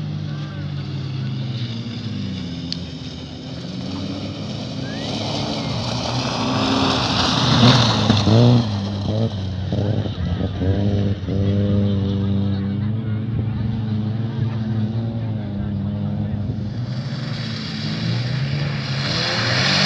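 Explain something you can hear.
A rally car engine roars and revs hard as the car speeds closer and passes by.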